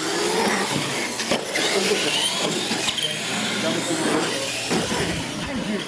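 Small electric motors whine as toy trucks speed along.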